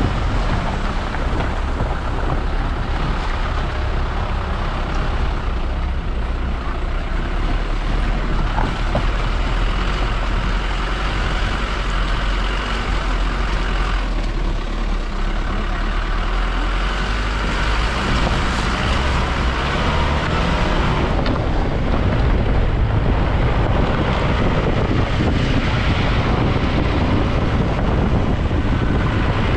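Tyres crunch and rattle over a rough gravel road.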